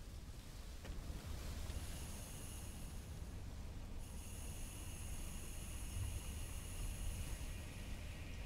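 A diesel locomotive engine drones steadily nearby.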